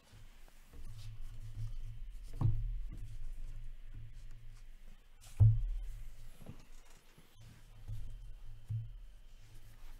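Stacks of cards tap and clatter on a table.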